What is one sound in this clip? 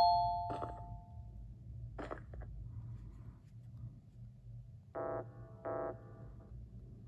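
Short electronic game tones beep.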